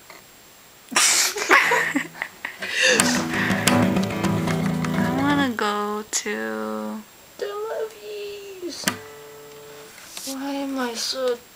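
An electronic keyboard plays wavering, sliding notes.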